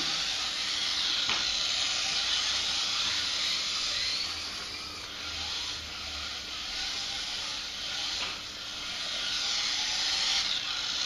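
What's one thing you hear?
Small electric racing cars whine loudly as they speed around a track, rising and falling in pitch.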